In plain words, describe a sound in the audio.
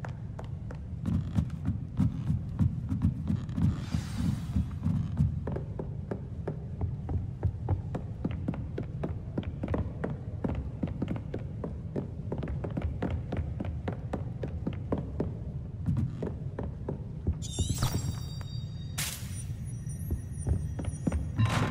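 Footsteps run quickly over wooden floors and stairs.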